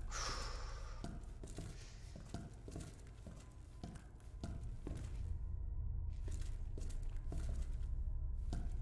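Footsteps tread slowly and evenly on a hard floor.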